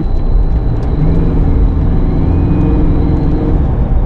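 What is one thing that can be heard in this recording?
A jeepney engine rumbles nearby as it passes.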